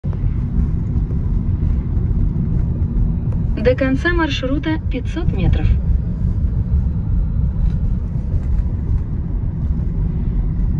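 A car's engine and tyres rumble steadily from inside the car as it drives along a road.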